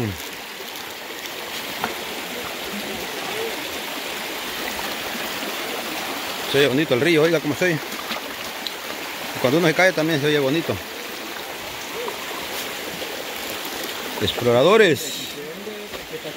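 A shallow stream flows over rocks.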